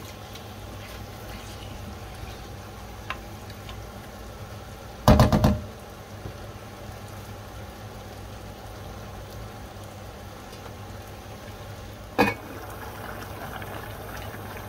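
A spatula scrapes and clanks against a pot.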